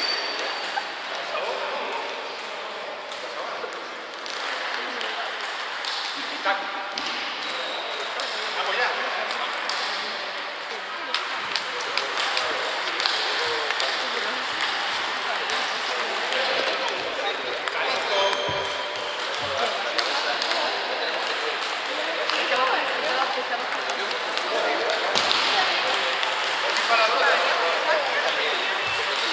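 A hall full of people murmurs and echoes.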